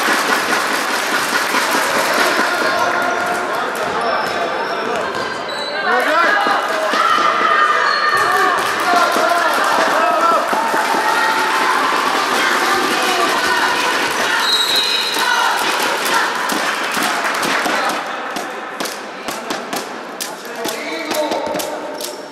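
Young girls shout and call out across an echoing sports hall.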